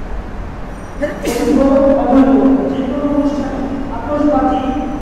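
An elderly man chants in a long, drawn-out voice through a microphone.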